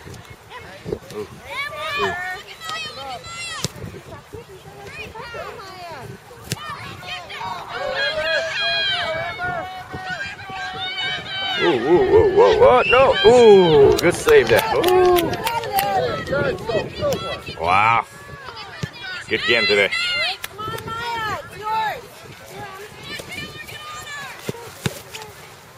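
Adults and children shout and cheer outdoors from a distance.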